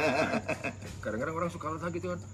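A second man answers in a lively voice.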